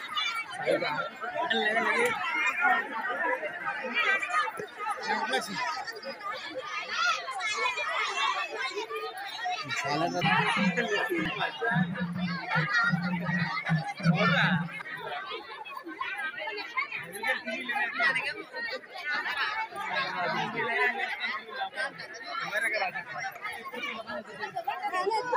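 A crowd of women and girls chatter and call out close by.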